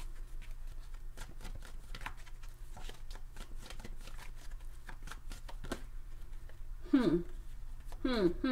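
Cards rustle and tap softly as a hand handles them.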